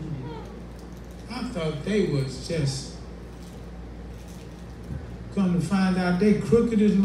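A man preaches with animation through a microphone and loudspeakers.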